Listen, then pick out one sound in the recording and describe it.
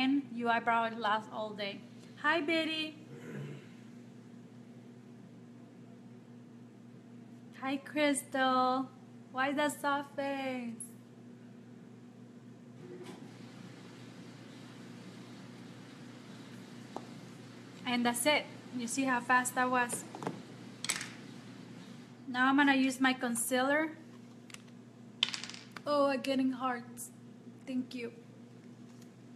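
A woman talks calmly and closely to a microphone, in pauses.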